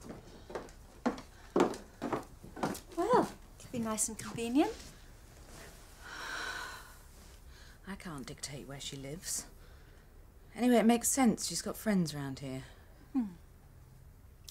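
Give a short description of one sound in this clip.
A woman speaks quietly and calmly close by.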